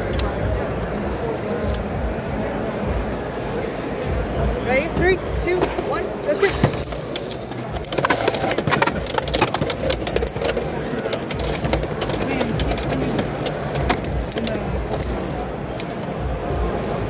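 A crowd chatters nearby in a busy, noisy hall.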